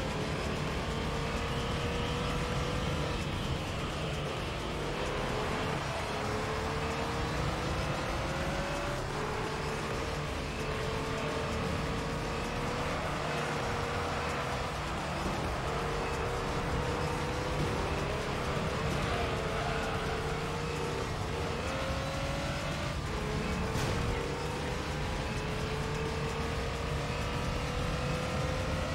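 A racing car engine revs high and shifts gears again and again.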